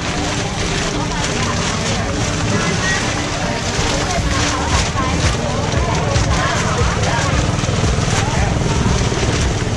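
Several adults chatter nearby outdoors.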